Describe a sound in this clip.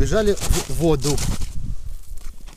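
A man speaks close by, outdoors.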